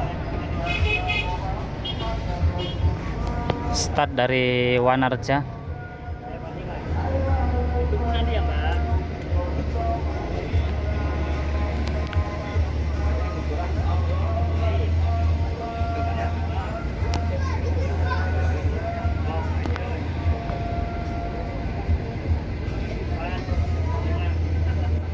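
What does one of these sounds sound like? A bus engine rumbles steadily at close range.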